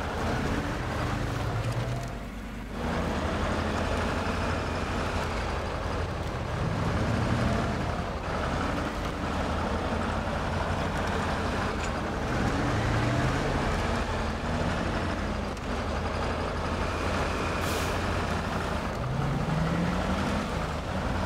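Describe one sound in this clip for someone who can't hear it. A heavy truck engine revs and labours, rising and falling in pitch.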